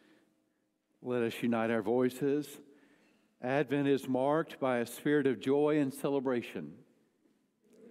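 A middle-aged man speaks calmly through a microphone in a large echoing hall.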